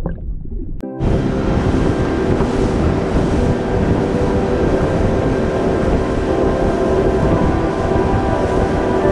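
Water rushes and splashes along a boat's hull.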